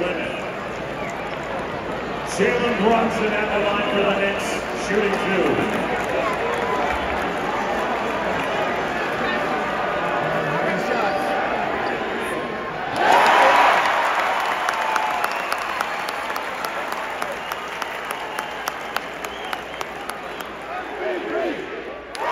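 A large arena crowd murmurs and cheers, echoing through the hall.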